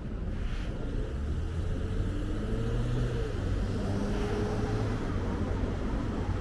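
Cars drive past nearby.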